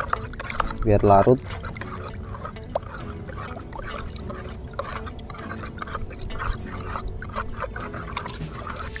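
A metal tool stirs and scrapes in water in a plastic tub.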